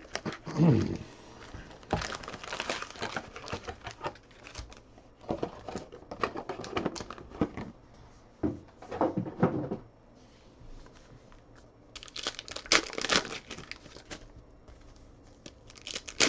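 Foil card packs rustle and crinkle in hands.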